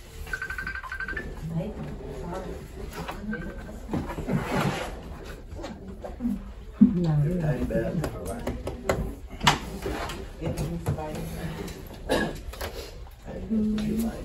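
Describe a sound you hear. People murmur and talk quietly nearby.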